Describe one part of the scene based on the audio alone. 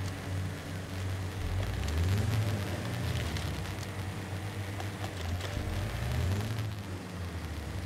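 Tyres crunch over rocks and dirt.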